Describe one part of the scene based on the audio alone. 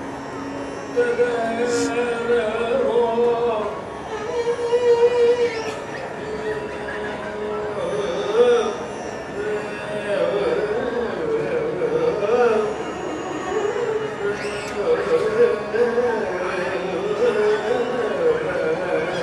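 A man sings a classical melody into a microphone.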